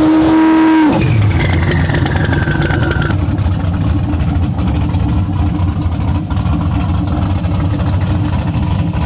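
A V8 drag car idles with a lumpy, deep rumble.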